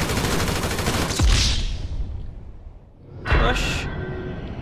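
A gunshot bangs loudly indoors.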